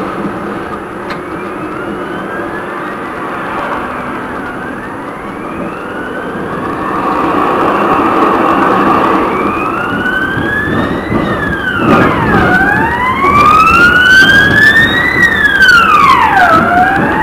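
An electric tram motor whines, rising and falling in pitch as it speeds up.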